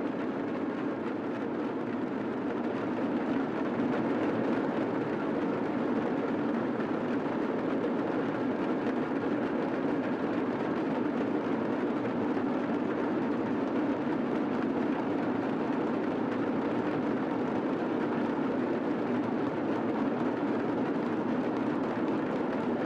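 Cymbals clash loudly and steadily in a busy rhythm.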